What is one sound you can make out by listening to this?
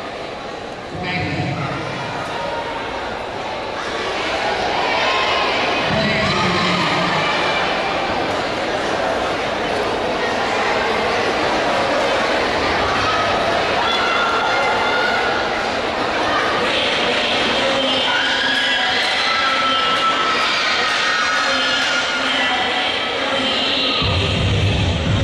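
Dance music plays loudly through loudspeakers in a large echoing hall.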